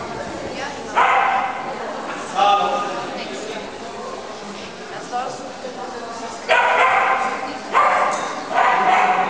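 A man shouts commands loudly to a dog in a large echoing hall.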